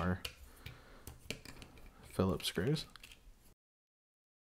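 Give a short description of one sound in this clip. A screwdriver scrapes and clicks against small screws.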